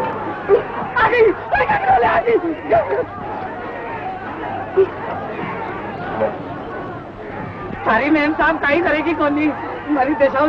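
A man shouts excitedly nearby.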